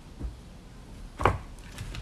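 A plastic bag rustles and thumps as it is handled.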